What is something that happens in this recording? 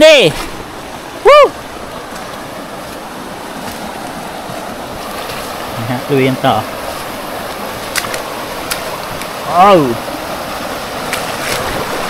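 A stream gurgles and flows over stones.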